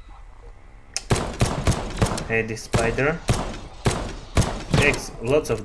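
Rapid pistol shots ring out in a quick burst.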